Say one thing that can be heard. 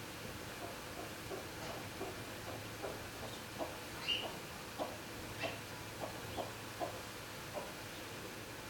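Chickens peck and scratch at straw with light taps.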